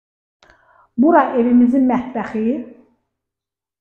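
A middle-aged woman speaks nearby with animation.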